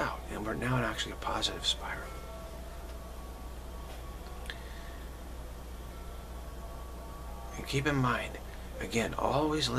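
A middle-aged man speaks calmly and close to the microphone, with long pauses.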